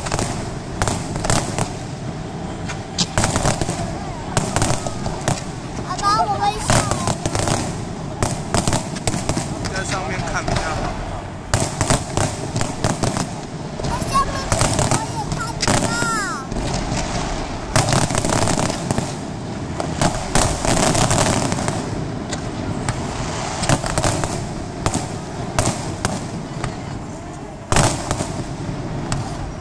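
Fireworks boom and crackle in rapid bursts outdoors.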